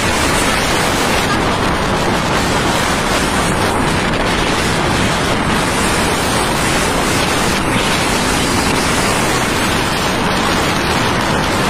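Traffic passes close by on the road.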